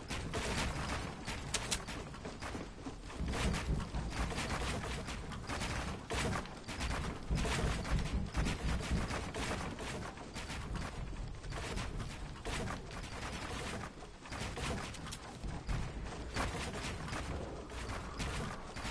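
Wooden panels knock sharply into place in quick succession.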